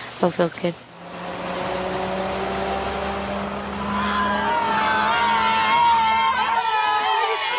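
A bus engine hums as a bus drives by.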